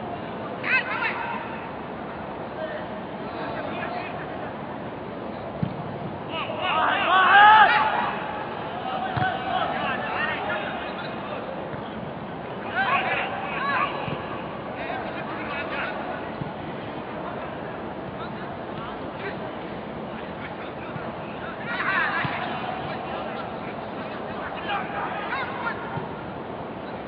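Men shout to each other across an open field, with a faint echo.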